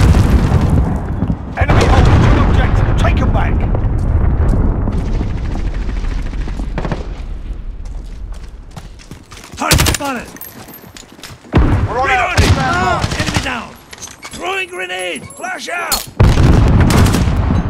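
Rapid gunfire cracks in loud bursts.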